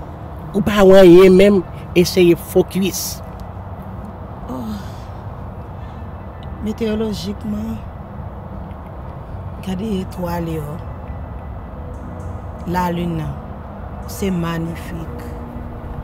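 A woman talks with animation close by.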